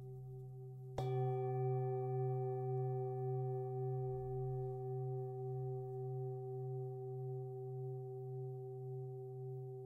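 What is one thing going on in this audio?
A low singing bowl hums steadily, wavering gently.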